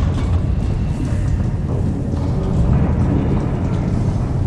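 Heavy metal footsteps clank on a hard floor.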